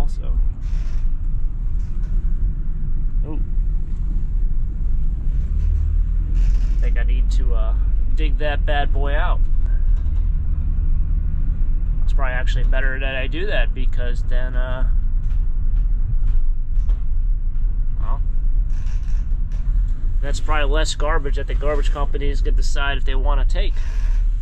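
A van engine rumbles steadily while driving.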